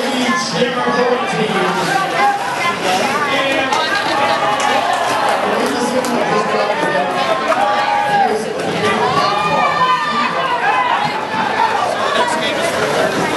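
Roller skate wheels roll and scrape on a concrete floor.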